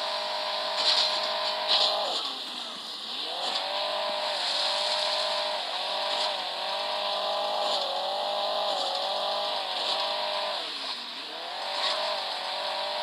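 A game car's engine hums steadily and revs up and down.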